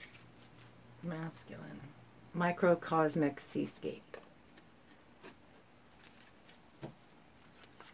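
Playing cards slide and tap softly as they are handled.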